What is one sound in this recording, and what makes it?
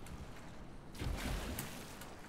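Water splashes heavily as a large animal plunges in.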